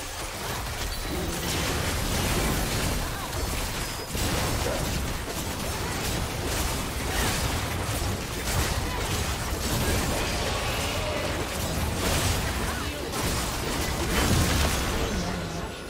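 Magic blasts and clashing hits of a battle crackle and boom throughout.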